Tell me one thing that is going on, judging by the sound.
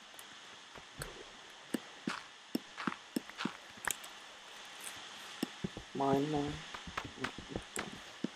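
A pickaxe chips away at blocks of sand with soft, quick crunching taps.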